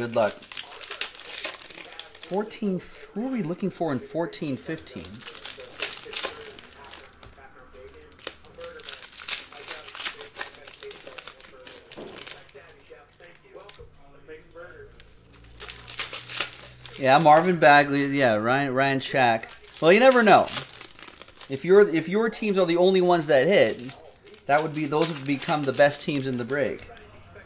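Foil wrappers crinkle as packs are torn open.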